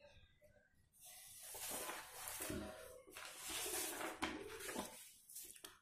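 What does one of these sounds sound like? Sheets of paper rustle and slide as they are moved.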